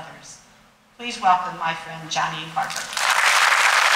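An elderly woman speaks calmly through a microphone in a large hall.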